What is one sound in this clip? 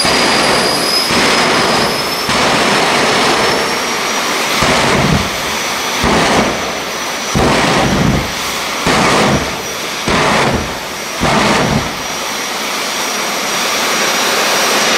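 A race car engine roars loudly.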